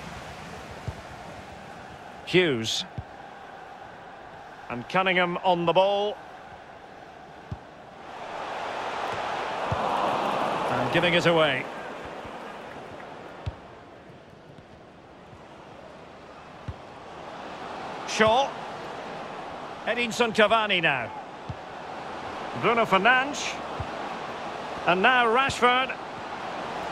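A large crowd murmurs and swells in a stadium.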